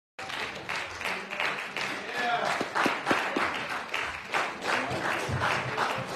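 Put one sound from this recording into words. An elderly man preaches with animation through a microphone in an echoing hall.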